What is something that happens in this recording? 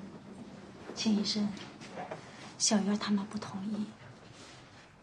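A woman speaks calmly up close.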